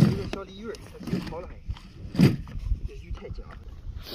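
Wet weeds and a net splash and slap onto a boat.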